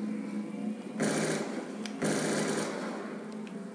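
Gunfire from a video game bursts loudly through a television speaker.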